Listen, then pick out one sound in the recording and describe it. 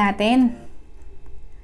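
A woman makes a short, pleased humming sound close to the microphone.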